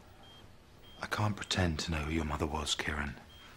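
A man speaks calmly and firmly, close by.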